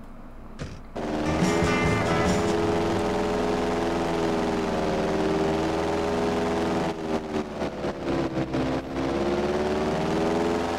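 A small propeller plane engine starts and drones steadily.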